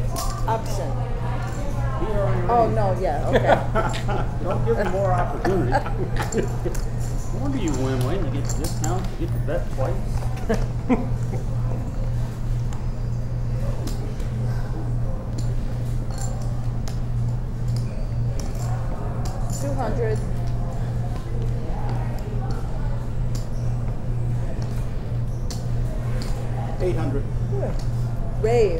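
Poker chips click and clatter.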